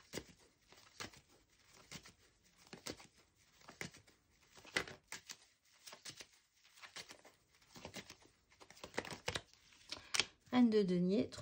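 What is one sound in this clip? Playing cards riffle and rustle as they are shuffled close by.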